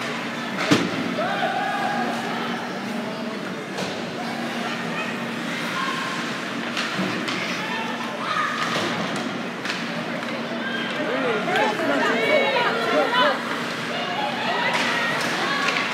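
Skates scrape and hockey sticks clack on the ice.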